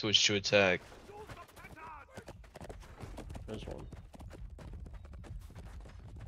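A horse gallops over dry ground.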